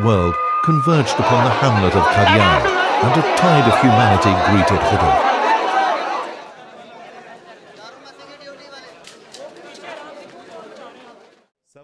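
A large crowd chants and calls out loudly outdoors.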